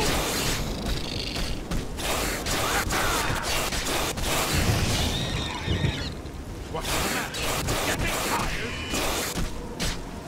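Blows thud as a creature is struck in a fight.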